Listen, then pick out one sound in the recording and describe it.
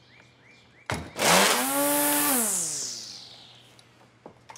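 A string trimmer's motor briefly spins up and winds down.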